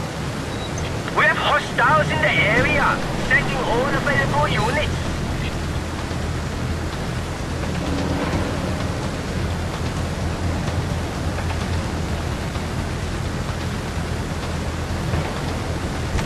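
An airplane engine drones steadily.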